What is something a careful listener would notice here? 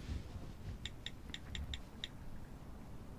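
A phone beeps quickly as keys are pressed.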